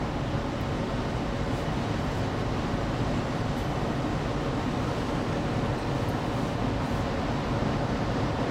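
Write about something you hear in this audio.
A car's engine and tyres rumble steadily inside the moving car.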